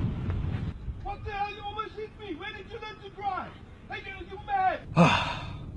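An elderly man shouts angrily nearby.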